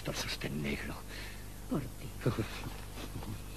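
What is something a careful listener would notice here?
A woman gasps and moans close by.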